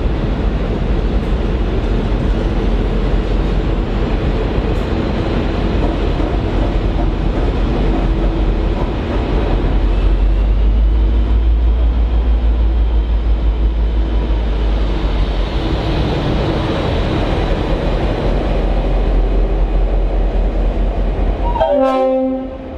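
Train carriages rumble and clatter steadily past on the rails.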